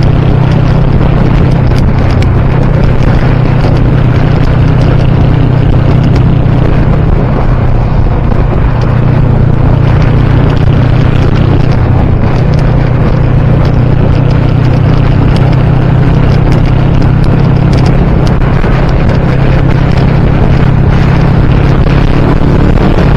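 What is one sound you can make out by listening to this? Wind rushes loudly past a motorcycle rider.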